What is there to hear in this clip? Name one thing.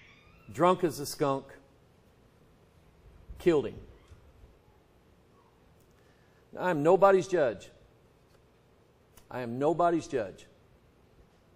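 A middle-aged man speaks with emphasis into a microphone, in short bursts with pauses.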